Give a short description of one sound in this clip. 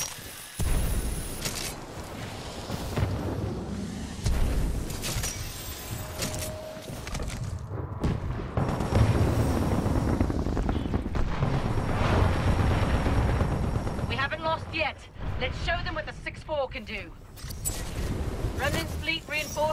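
A rifle fires in bursts of gunshots.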